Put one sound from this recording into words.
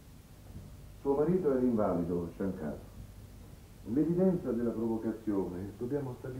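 A middle-aged man speaks firmly and clearly, close by.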